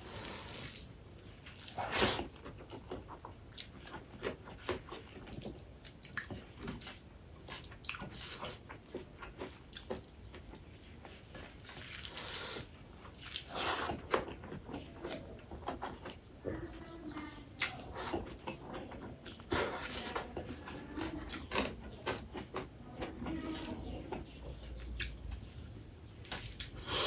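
Fingers squelch and mix rice against a plate.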